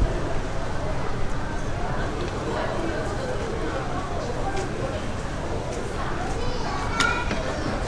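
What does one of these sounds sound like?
Broth is ladled and poured into a bowl with a soft splash.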